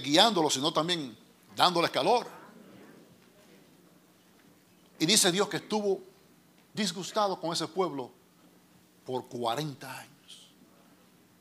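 A middle-aged man speaks into a microphone in short, animated phrases with pauses.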